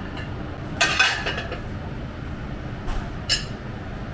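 A metal pan clinks as it is set down.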